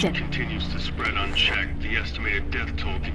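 A young woman speaks quietly.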